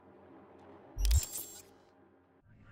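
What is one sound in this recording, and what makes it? A bright electronic whoosh sweeps as a menu closes.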